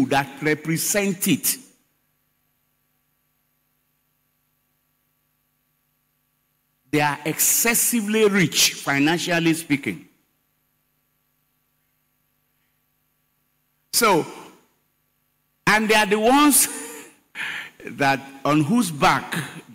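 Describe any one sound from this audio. A man preaches with animation into a microphone, heard over loudspeakers in a large hall.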